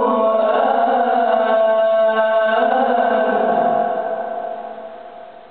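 A young man chants slowly through a microphone, his voice echoing in the room.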